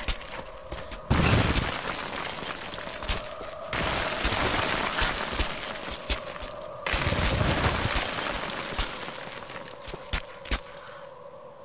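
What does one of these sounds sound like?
Hands and boots knock and scrape against stone during a climb.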